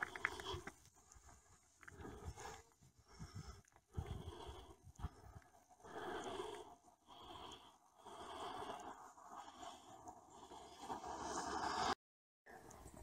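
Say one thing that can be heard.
A bison tears and chews grass nearby.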